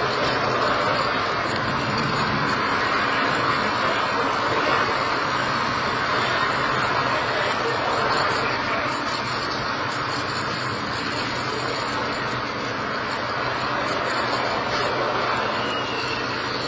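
A rocket rumbles far off outdoors as it climbs.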